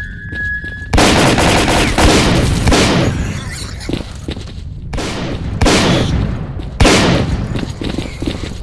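Loud gunshots ring out and echo.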